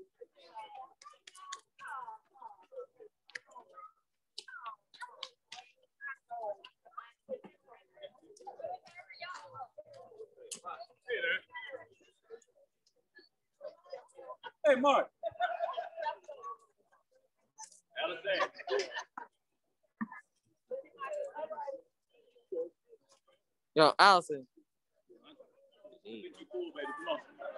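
Young children shout and chatter excitedly outdoors.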